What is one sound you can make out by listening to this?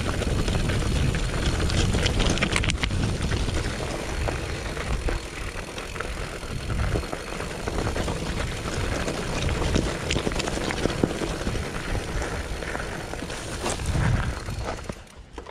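Bike tyres crunch and rattle over loose gravel.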